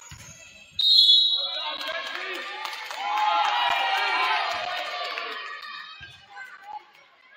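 A crowd cheers and shouts in an echoing gym.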